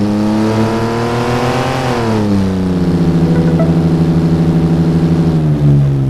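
A car engine hums and drops in pitch as the car slows.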